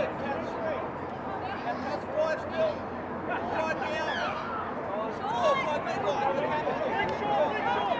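Young women shout to each other across an open field.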